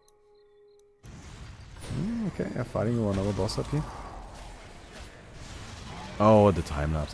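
Game spells and blasts crackle and whoosh.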